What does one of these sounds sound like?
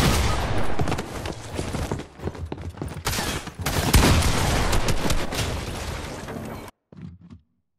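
Wooden walls and ramps are placed with quick clattering knocks.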